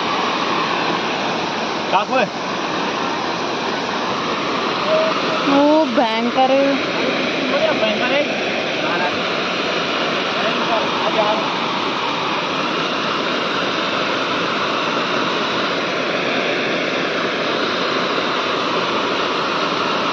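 Muddy water rushes down a slope with a steady roar.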